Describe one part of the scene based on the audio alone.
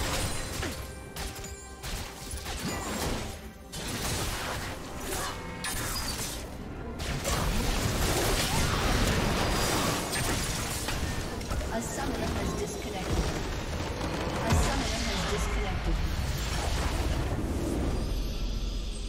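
Spells and weapons clash and burst in a busy fight.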